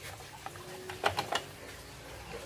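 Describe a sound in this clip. Metal clips click against battery terminals.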